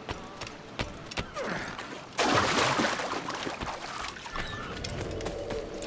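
Footsteps thud quickly on grass and sand.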